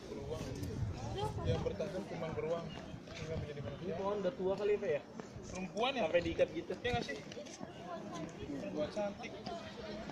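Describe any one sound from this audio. Several men and women talk and chatter nearby outdoors.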